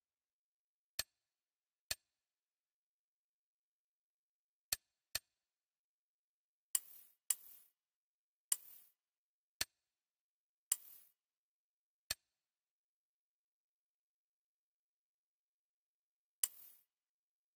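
Menu clicks tick sharply now and then.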